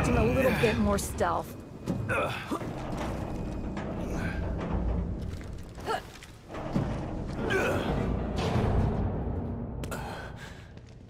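A heavy metal hatch scrapes and grinds open.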